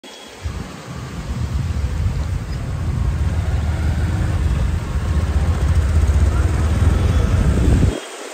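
Water from a fountain splashes and patters.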